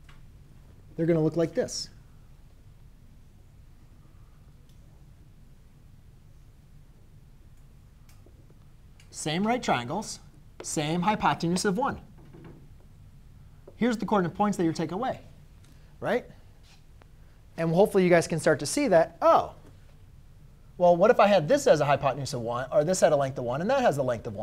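A man speaks calmly and clearly, pausing between phrases.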